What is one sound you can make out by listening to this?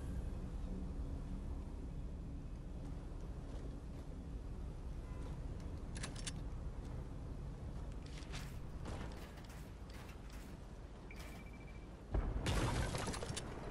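Game footsteps patter on a rooftop.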